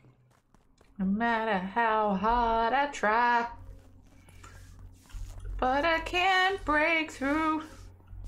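A young woman sings close to a microphone.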